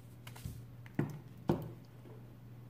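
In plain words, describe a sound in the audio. A phone is set down on a wooden table with a couple of knocks.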